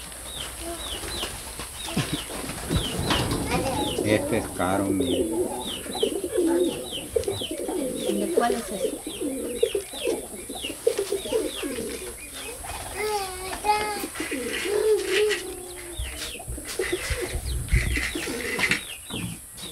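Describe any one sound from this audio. An elderly man talks quietly nearby.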